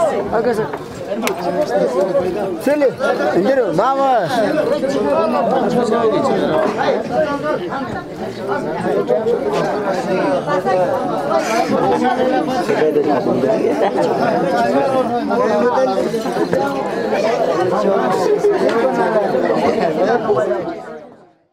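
A large crowd of men and women talks and calls out loudly outdoors.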